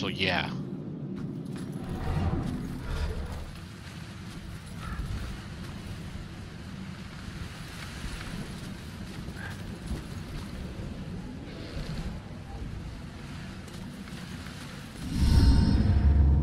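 Footsteps crunch softly on gravel and dry leaves.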